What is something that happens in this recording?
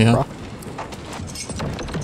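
A young man speaks quietly close to a microphone.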